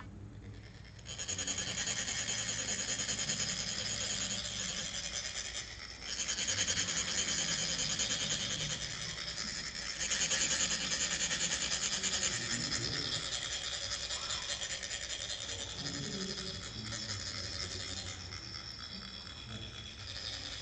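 Metal funnels rasp steadily in a fast scraping rhythm as sand is poured.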